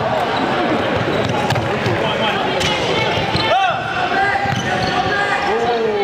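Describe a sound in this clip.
A crowd of young men and women shouts and cheers in a large echoing hall.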